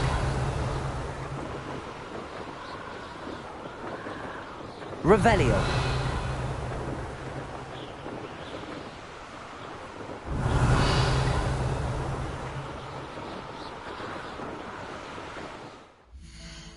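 Wind rushes past loudly, rising and falling in gusts.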